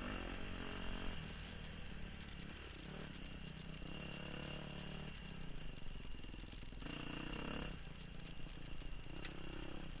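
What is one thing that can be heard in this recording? A dirt bike engine revs and sputters up close, rising and falling in pitch.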